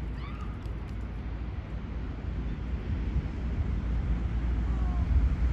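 Gulls call briefly nearby.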